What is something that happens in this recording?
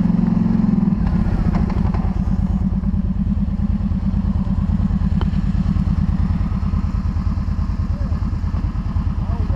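Quad bike engines idle nearby with a steady rumble.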